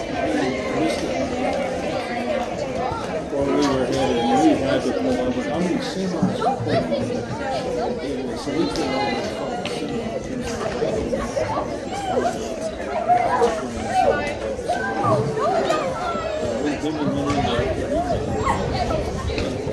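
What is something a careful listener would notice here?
Young women and girls chatter and call out together outdoors.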